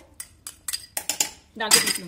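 A spoon scrapes inside a metal jar.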